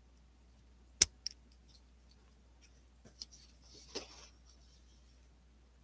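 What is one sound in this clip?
A sheet of paper rustles as it is turned.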